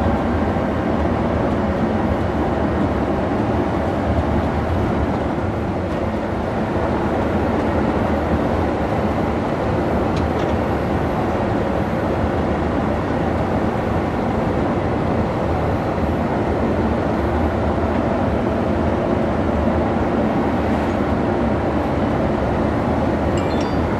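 A bus engine drones steadily while driving down a highway.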